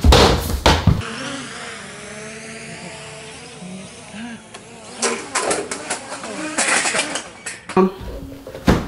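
A drone buzzes overhead outdoors.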